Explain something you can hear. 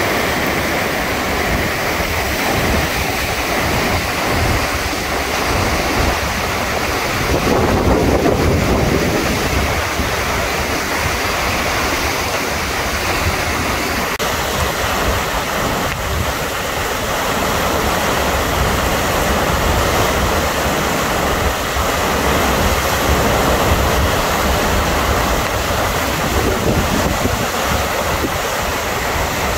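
A fast river rushes and churns loudly over stones nearby.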